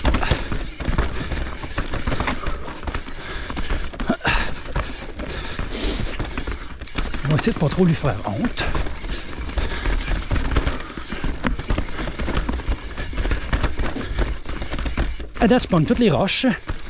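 A bicycle rattles and clatters over rocks and roots.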